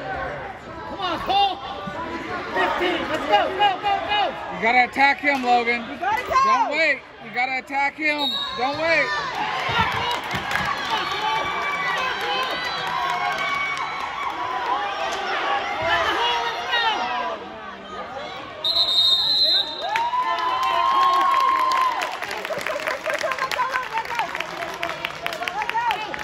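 A crowd of spectators shouts and cheers loudly in an echoing gym.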